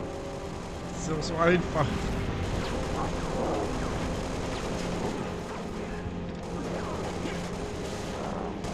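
Energy weapons whine and zap.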